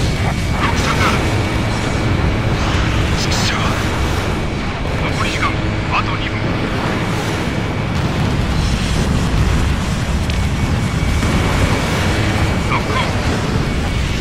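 A steady warning tone beeps.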